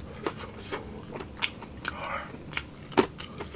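Fingers squelch and rustle through soft food in a bowl.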